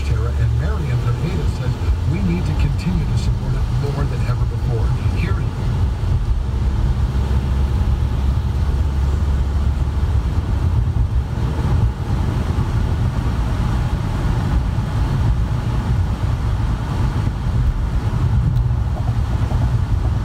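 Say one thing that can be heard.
Raindrops patter on a windscreen.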